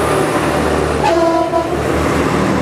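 A train horn sounds briefly.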